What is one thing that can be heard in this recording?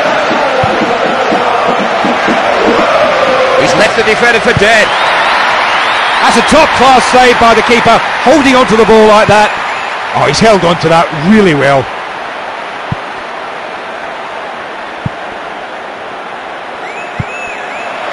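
A stadium crowd roars loudly, then quietens.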